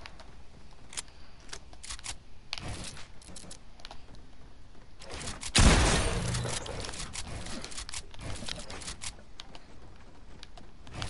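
Building pieces in a video game click and snap as walls are edited.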